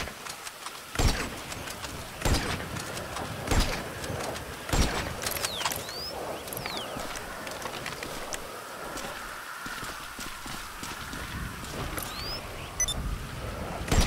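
A rifle fires loud, sharp shots, one after another.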